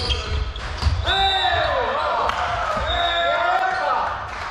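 Young men and women cheer together.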